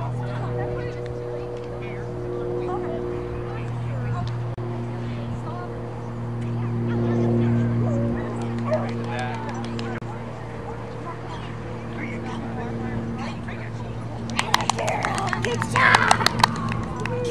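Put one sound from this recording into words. A woman calls out commands to a dog with animation, outdoors.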